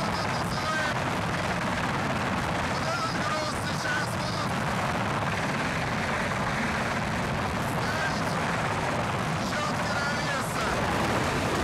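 A man speaks loudly and excitedly over the noise, close by.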